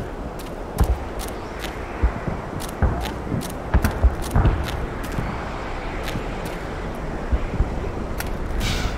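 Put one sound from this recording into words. Footsteps crunch on dry, stony ground.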